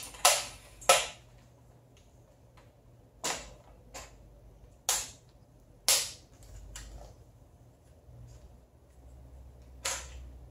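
A metal tripod clicks and snaps sharply as its legs are handled.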